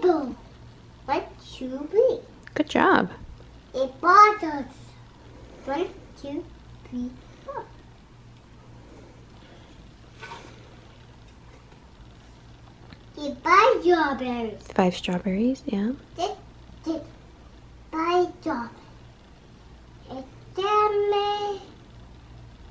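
A young boy reads aloud close by, in short bursts with pauses.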